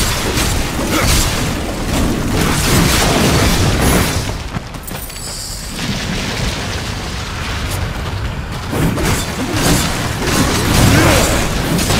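Fiery explosions burst and roar.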